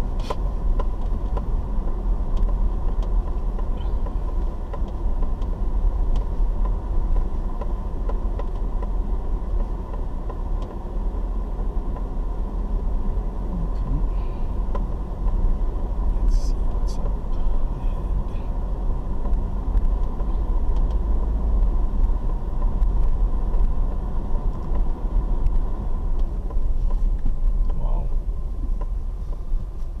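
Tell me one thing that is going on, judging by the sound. Tyres crunch and rattle over a rough dirt road.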